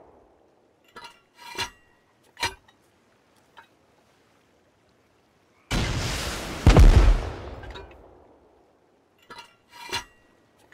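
Metal parts clank as a rocket launcher is reloaded.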